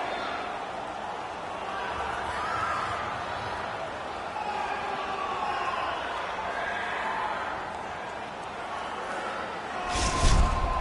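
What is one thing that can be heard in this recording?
A large crowd murmurs and cheers in a big echoing arena.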